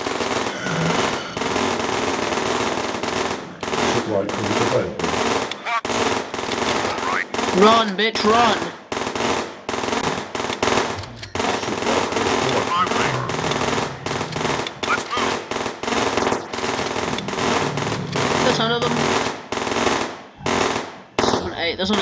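Rapid gunfire crackles and pops without pause.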